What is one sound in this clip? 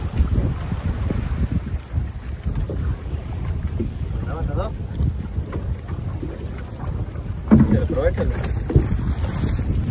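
Wind blows hard outdoors over open water.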